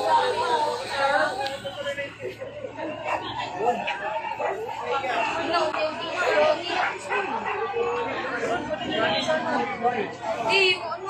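A crowd of men and women shout and talk excitedly nearby, outdoors.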